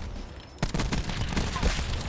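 Gunfire rattles in bursts.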